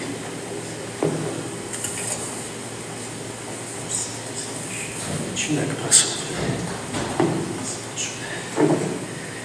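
A middle-aged man speaks through a microphone in a large echoing hall.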